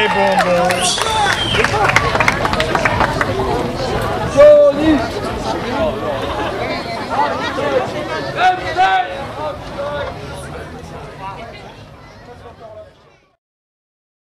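A rock band plays live through loudspeakers outdoors.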